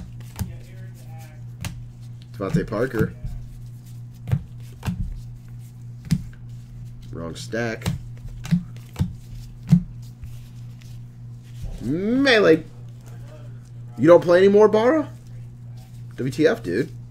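Trading cards click and slap as hands shuffle through them.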